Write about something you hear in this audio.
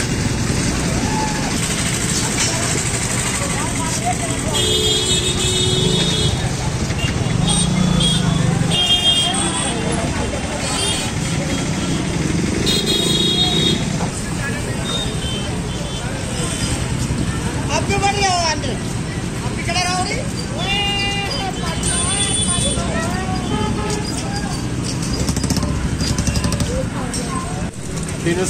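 People chatter in a busy street outdoors.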